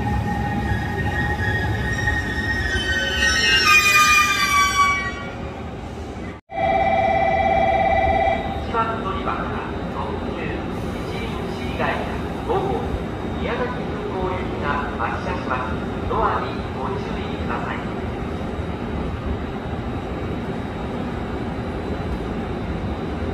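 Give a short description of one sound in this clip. A train rolls in slowly with a low rumble.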